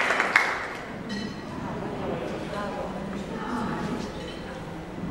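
A woman speaks into a microphone over a loudspeaker.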